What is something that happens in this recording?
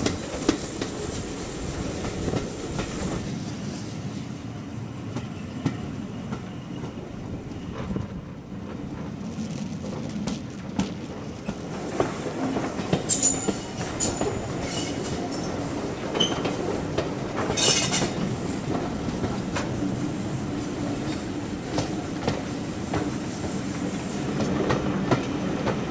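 A steam locomotive chuffs ahead of the train.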